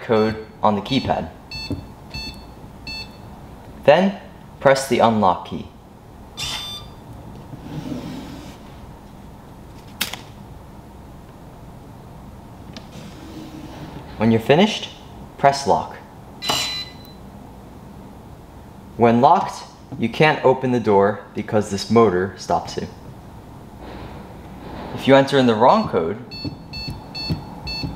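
Keypad buttons beep with short electronic tones.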